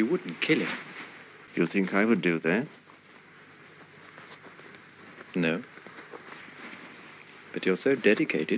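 An elderly man speaks quietly and haltingly.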